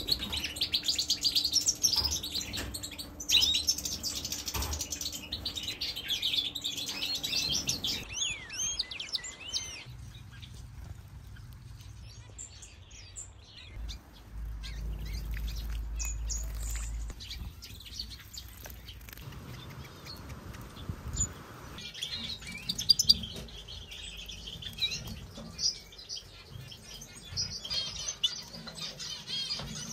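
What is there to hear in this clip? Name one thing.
Small birds sing with quick, bright twittering and chirps.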